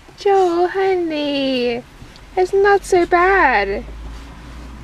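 A young child cries and wails loudly close by.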